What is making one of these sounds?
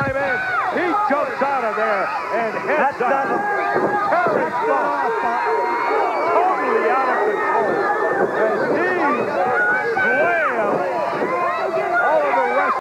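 A large crowd shouts and cheers loudly in an echoing arena.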